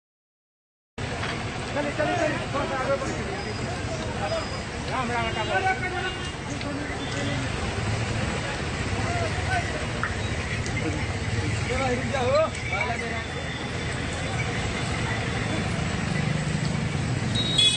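A crowd of men chatter and call out nearby outdoors.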